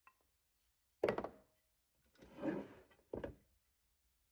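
Pieces of wood knock together as they are handled.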